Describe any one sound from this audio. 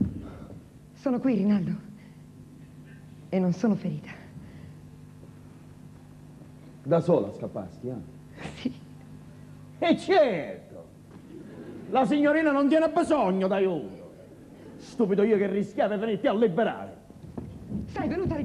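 A man speaks loudly and theatrically.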